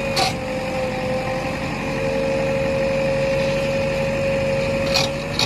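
A digger bucket scrapes and grinds into rubble and soil.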